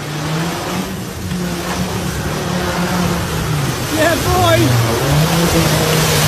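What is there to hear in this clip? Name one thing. An off-road vehicle's engine roars as it drives through mud.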